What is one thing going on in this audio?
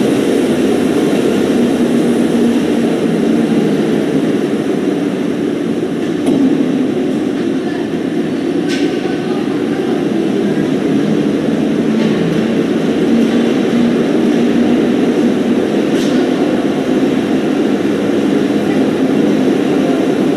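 An ice resurfacing machine's engine hums steadily in a large echoing arena.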